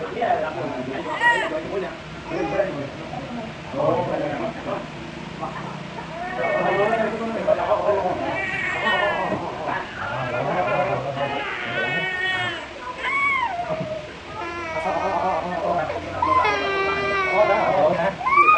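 A toddler cries loudly, wailing.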